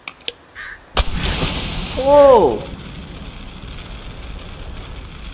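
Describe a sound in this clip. A flare ignites with a sudden burst and hisses steadily.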